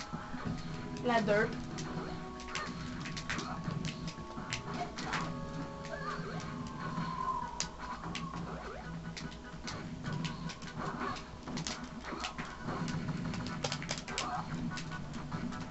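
Video game punches and hits land in quick bursts.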